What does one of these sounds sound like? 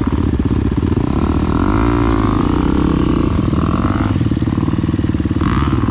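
A dirt bike engine revs up and pulls away nearby.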